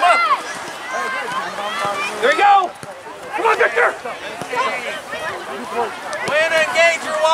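Men and boys shout on an open field outdoors.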